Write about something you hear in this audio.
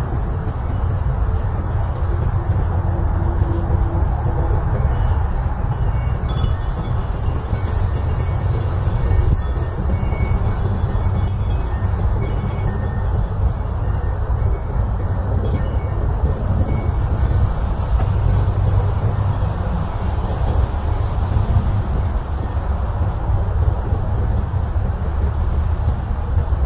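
Hanging paper leaves rustle in the wind.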